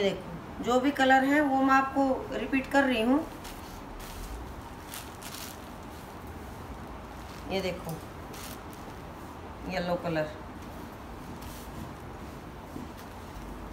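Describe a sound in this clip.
Fabric rustles as hands handle it.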